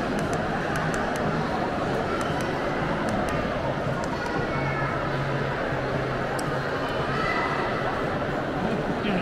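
A crowd chatters in a large echoing indoor hall.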